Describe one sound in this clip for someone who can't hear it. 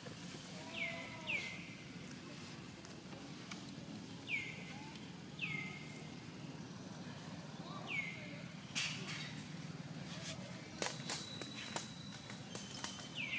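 A baby monkey squeaks in short, high, falling cries.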